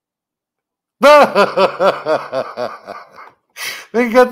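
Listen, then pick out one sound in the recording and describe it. A middle-aged man laughs heartily into a microphone.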